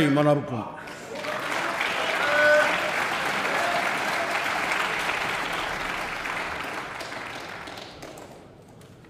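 A crowd of people applauds and murmurs.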